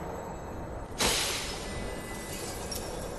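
A bright shimmering chime rings out.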